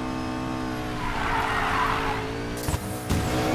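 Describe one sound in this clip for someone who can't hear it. Tyres screech briefly through a drift.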